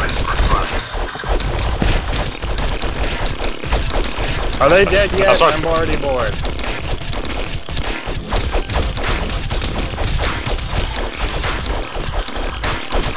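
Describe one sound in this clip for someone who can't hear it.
Swords clash and thump in a busy fight.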